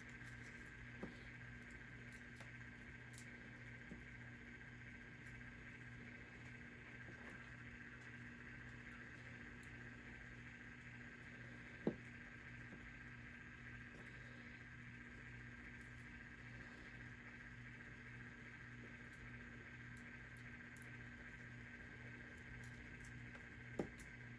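A small stick taps and scrapes against a plastic object now and then.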